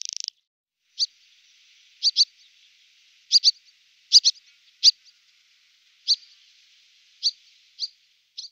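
A swallow gives short sharp chirps.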